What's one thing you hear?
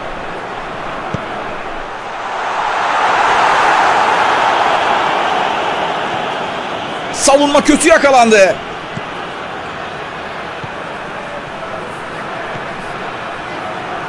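A large stadium crowd roars steadily, swelling and then easing off.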